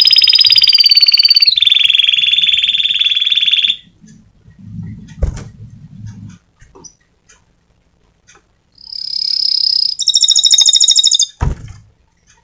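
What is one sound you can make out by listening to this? A small bird sings loud, fast trilling songs close by.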